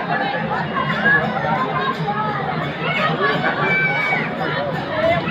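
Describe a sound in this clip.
A large crowd of men and women chatters loudly outdoors.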